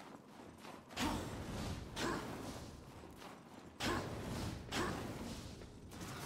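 Heavy blasts boom in quick bursts.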